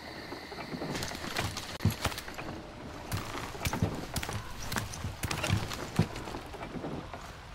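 Footsteps clatter on a wooden ladder.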